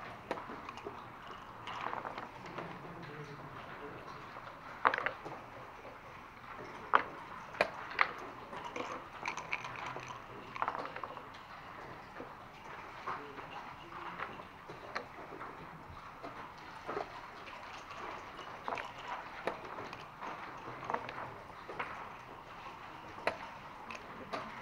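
Dice rattle and clatter on a board.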